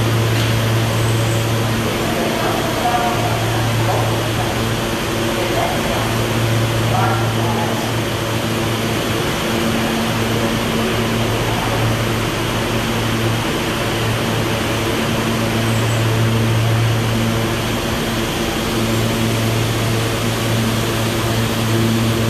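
A subway train idles with a steady low hum in an echoing underground station.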